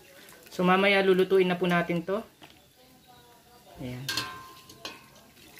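Broth simmers and bubbles softly in a pot.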